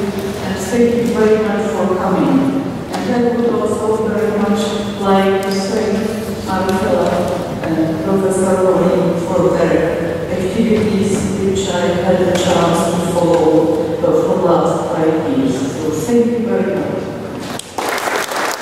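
A woman speaks calmly into a microphone in an echoing hall.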